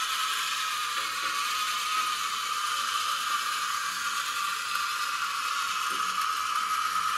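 Water runs from a tap and splashes steadily into a metal sink.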